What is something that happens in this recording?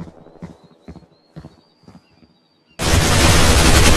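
A rifle fires a burst of gunshots.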